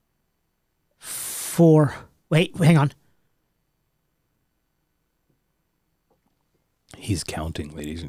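A second man speaks into a microphone, with long pauses.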